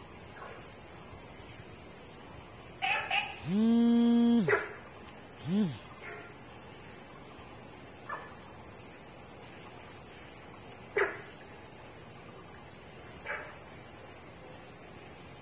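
Water trickles gently along a shallow stream.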